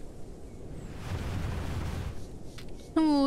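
A large beast shakes its body with a soft rustling sound.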